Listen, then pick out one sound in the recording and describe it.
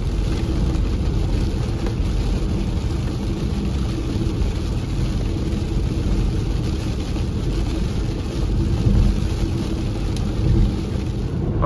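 A windshield wiper swishes across the glass.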